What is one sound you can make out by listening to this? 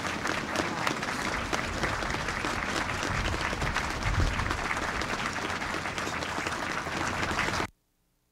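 A large crowd applauds outdoors.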